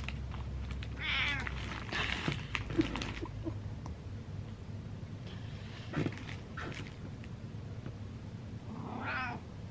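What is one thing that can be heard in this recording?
A domestic cat meows.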